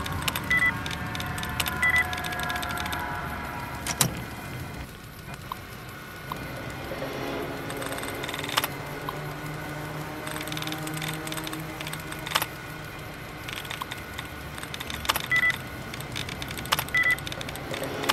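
Keys clatter as text is typed on a terminal.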